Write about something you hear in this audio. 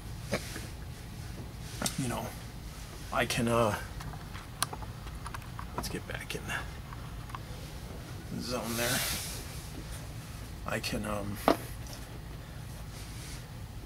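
Small resin pieces tap and click on a tabletop.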